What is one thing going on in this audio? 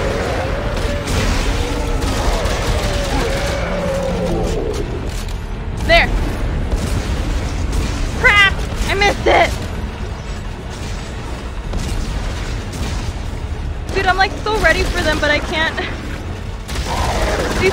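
Gunshots and blasts go off.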